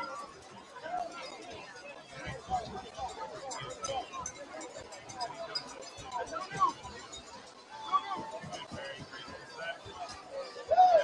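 A crowd of spectators chatters and cheers outdoors across a large open space.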